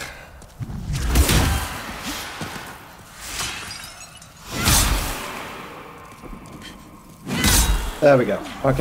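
Heavy blows land with deep, booming thuds.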